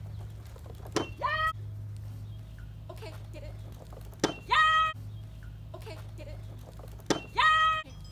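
A seesaw board thumps down onto the grass.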